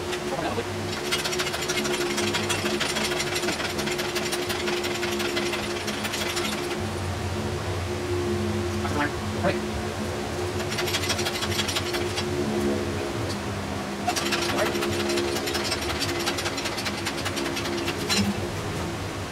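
A hoist jack clicks and ratchets as it is pumped by hand.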